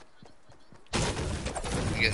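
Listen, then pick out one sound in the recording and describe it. A pickaxe strikes a tree with sharp thuds.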